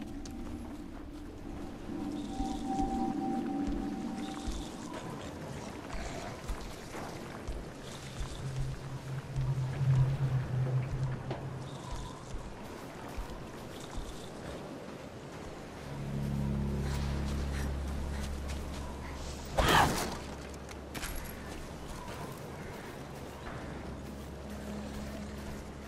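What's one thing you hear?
Footsteps crunch over grass and gravel.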